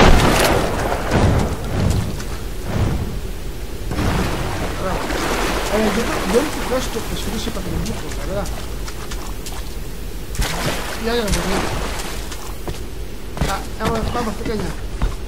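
Water rushes and flows steadily.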